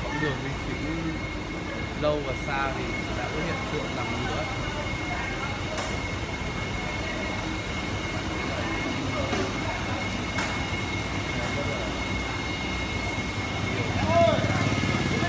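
Water bubbles and fizzes steadily from air hoses in tanks.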